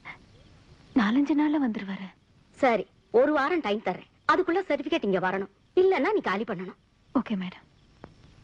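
A woman speaks in a tense, urgent voice nearby.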